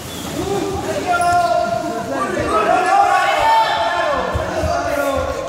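Children's voices ring out in a large echoing hall.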